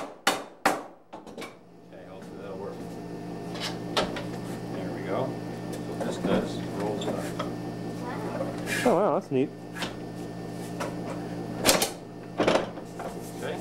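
Wood knocks and clatters.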